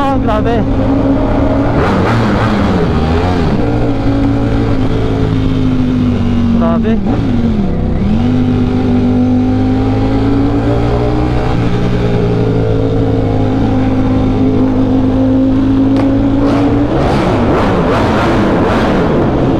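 A motorcycle engine roars loudly, revving up and down as it shifts gears.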